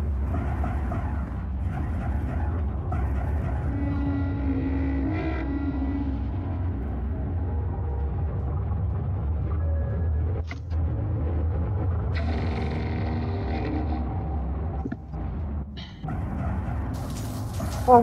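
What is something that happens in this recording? A spacecraft engine hums with a low, steady rumble.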